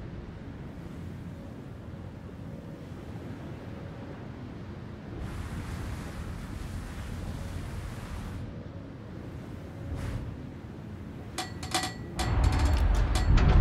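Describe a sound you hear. A large ship's engines rumble low and steady.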